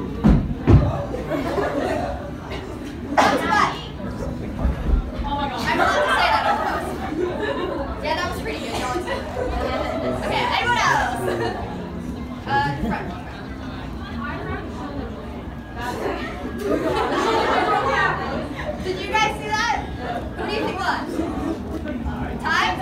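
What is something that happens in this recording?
A crowd of young adults chatters and laughs in a large echoing hall.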